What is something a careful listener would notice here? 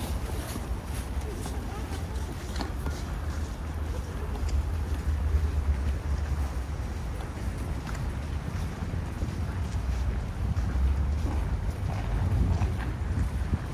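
Footsteps crunch on packed snow nearby.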